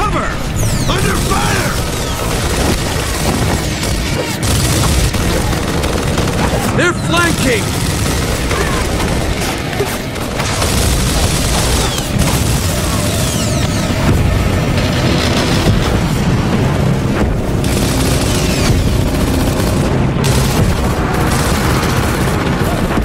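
A heavy machine gun fires rapid bursts close by.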